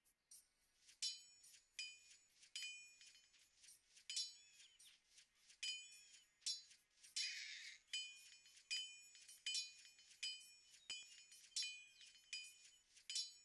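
Metal blades clash and ring again and again in a battle.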